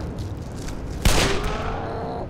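A gunshot bangs once.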